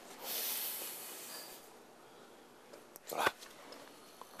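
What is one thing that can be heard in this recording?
A young man speaks in a low voice nearby.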